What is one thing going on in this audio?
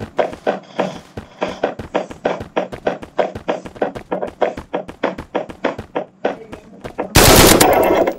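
Footsteps run steadily across a hard floor.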